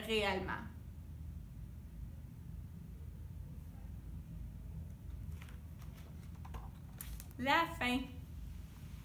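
A young woman speaks brightly and expressively, close by.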